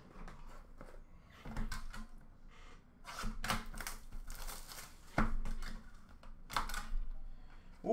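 Plastic-wrapped packs rustle and tap as hands handle them close by.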